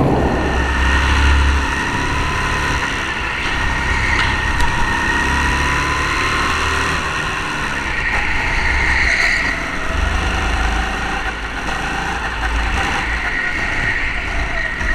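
Other go-kart engines whine nearby.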